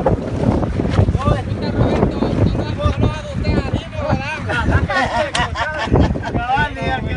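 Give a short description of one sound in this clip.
A man talks with animation close by, outdoors.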